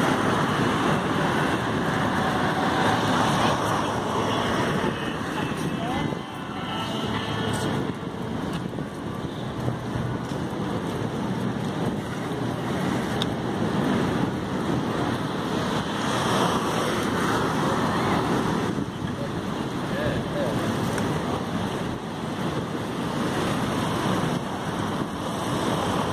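Cars pass by on a road.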